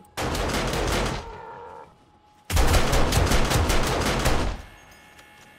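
Quick footsteps crunch on snow.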